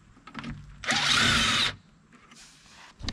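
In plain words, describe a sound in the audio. A cordless impact wrench whirs briefly.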